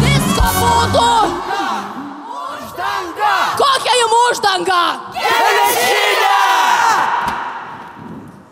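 A young woman sings loudly into a microphone.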